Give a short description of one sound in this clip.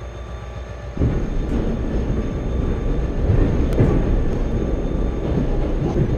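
Another train roars past close by.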